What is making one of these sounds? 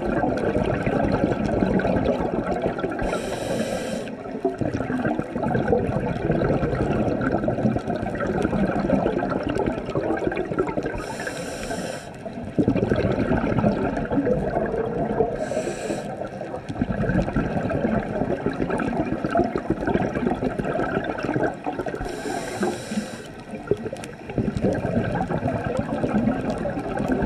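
A scuba diver breathes out through a regulator, releasing rumbling, bubbling air.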